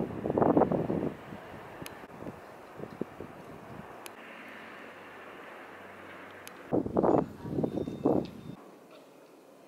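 Wind gusts outdoors, buffeting in loud bursts.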